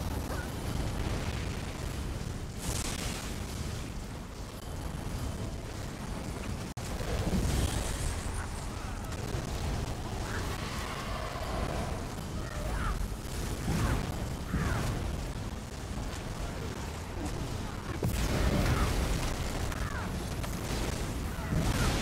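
Heavy impacts boom during a fight.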